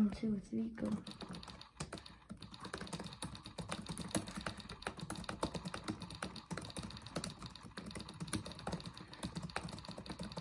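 Fingers tap quickly on a laptop keyboard.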